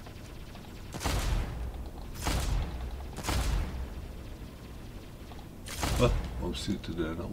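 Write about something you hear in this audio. Heavy blasts of gunfire boom in bursts.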